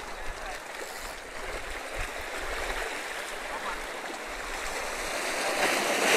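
Waves wash and splash against rocks close by.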